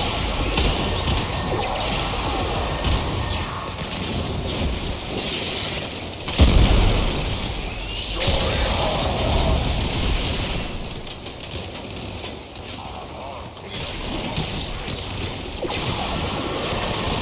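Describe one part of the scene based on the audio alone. Rapid gunfire and energy blasts crackle and boom.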